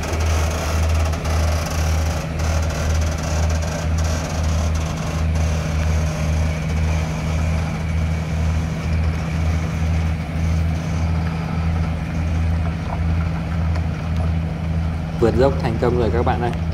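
A heavy engine throbs with a steady low pulsing beat.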